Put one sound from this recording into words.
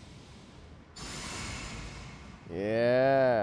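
A magic spell whooshes and shimmers.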